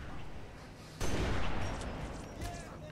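A sniper rifle fires a single loud, booming shot that rumbles away.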